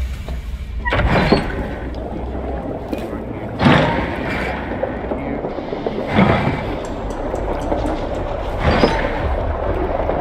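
A metal valve wheel squeaks as it is turned.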